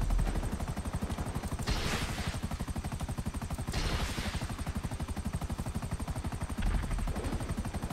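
Helicopter rotor blades thump rapidly and steadily.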